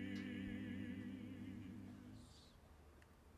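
Several men sing together through microphones, with a wavering tone, in a large echoing hall.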